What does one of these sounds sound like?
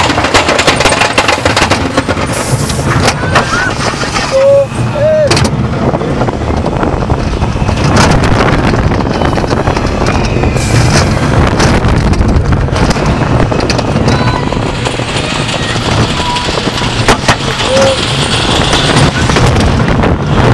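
A roller coaster train rattles and roars along its track.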